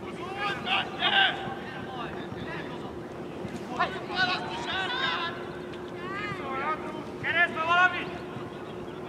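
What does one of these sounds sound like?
Young players shout loudly to each other across an open field outdoors.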